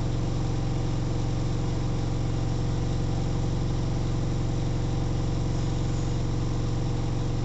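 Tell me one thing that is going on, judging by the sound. A washing machine hums steadily as its drum turns.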